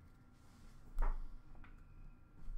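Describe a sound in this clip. A card taps down on a glass surface.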